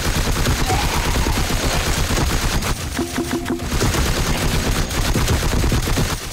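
Monsters splatter with wet squelches.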